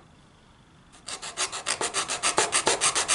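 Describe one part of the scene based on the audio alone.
A metal tool scrapes rapidly back and forth against metal.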